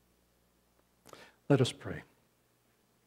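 A man speaks calmly and slowly through a microphone.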